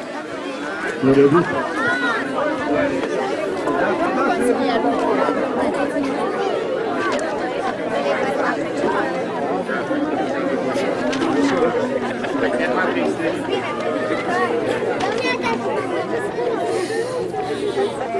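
A crowd of children chatters and calls out nearby outdoors.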